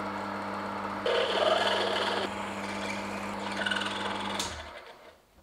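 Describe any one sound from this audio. A drill bit grinds into metal with a scraping whine.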